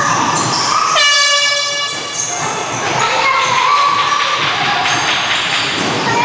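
A basketball bounces on a wooden floor as a player dribbles.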